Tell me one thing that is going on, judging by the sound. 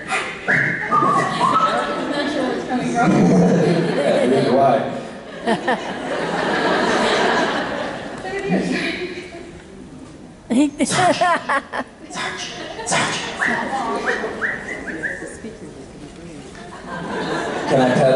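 A man talks animatedly through a loudspeaker in a large echoing hall.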